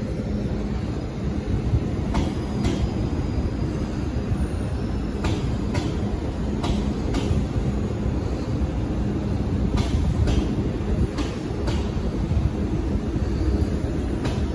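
A train rumbles slowly along the tracks nearby.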